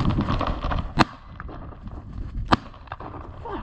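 A shotgun fires loud sharp shots outdoors.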